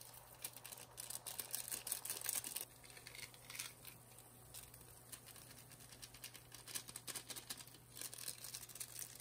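Broth bubbles and sizzles at a boil in a wok.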